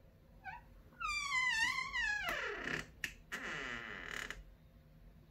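A door creaks loudly as it slowly swings open.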